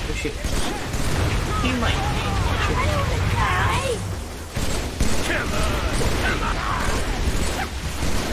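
A young man talks with animation through a microphone.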